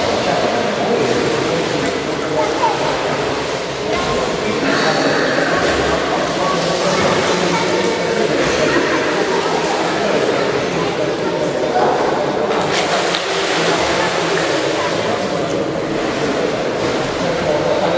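Water laps and sloshes steadily in a large echoing pool hall.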